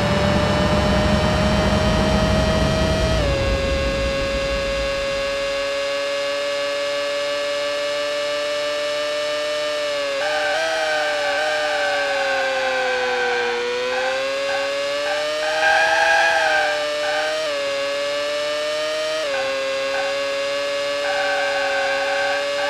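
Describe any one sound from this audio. A racing car engine whines at a high pitch, shifting up and down as the car speeds through corners.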